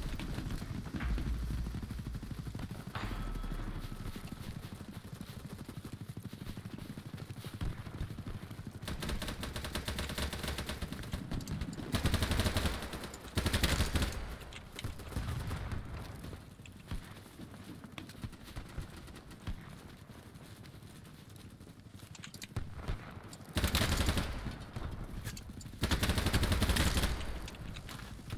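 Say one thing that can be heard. Footsteps crunch over dry grass.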